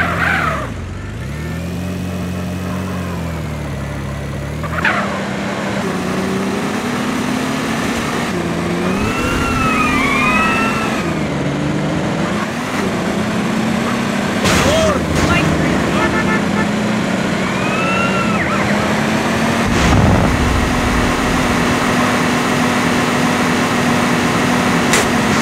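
A car engine drones and revs as it drives.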